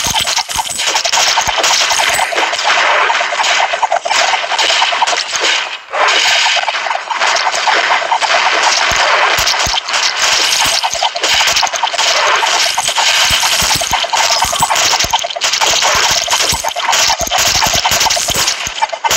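Rapid video game gunfire and explosion effects crackle without a break.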